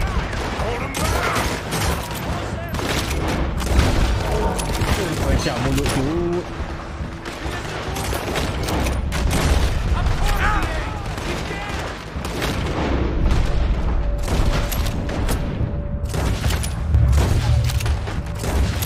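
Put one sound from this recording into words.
Gunshots crack rapidly again and again.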